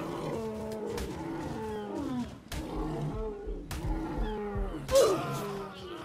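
A creature strikes with heavy, dull thuds.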